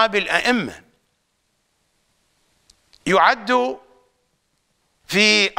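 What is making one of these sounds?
A middle-aged man speaks calmly and deliberately into a close microphone, with pauses.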